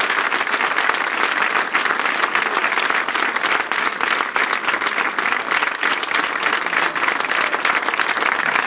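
Many people clap their hands.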